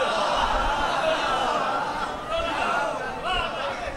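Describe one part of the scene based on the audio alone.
A crowd of men chants loudly.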